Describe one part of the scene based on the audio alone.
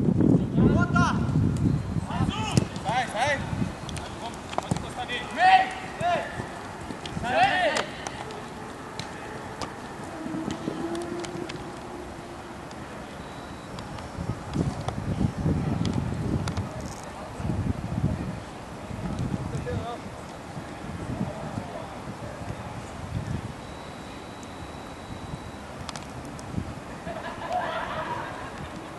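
Young men shout to each other across an open pitch.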